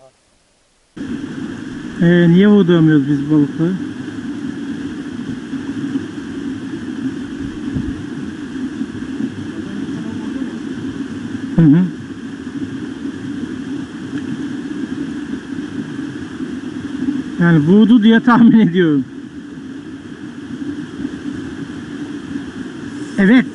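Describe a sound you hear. A stream rushes and burbles steadily over rocks.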